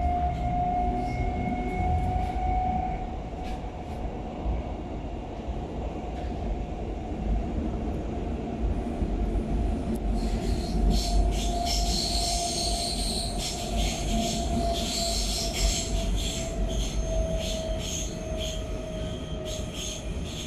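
A train carriage rumbles and hums steadily as it runs along the track.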